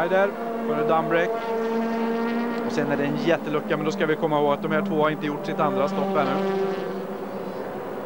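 A racing car engine roars as the car speeds past.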